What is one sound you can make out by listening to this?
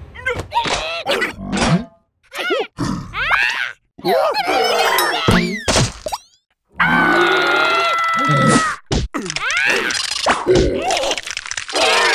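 Small cartoon creatures chatter and squeal in high, squeaky voices.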